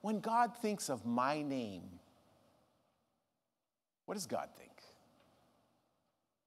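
A middle-aged man speaks with expression through a microphone in a large echoing hall.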